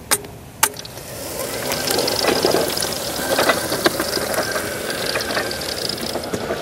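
An electric motor whirs as a tracked wheelchair rolls over grass.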